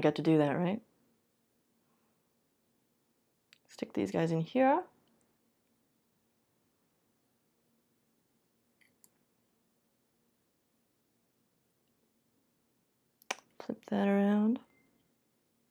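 A young woman speaks in short bursts close to a microphone.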